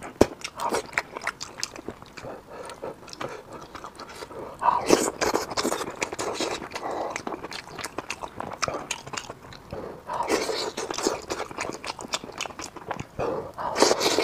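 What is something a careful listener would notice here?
A man chews food with an open mouth close to a clip-on microphone.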